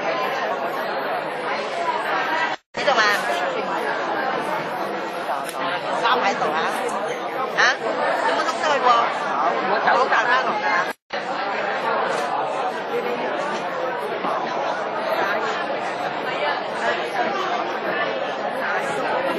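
A small ensemble of instruments plays along.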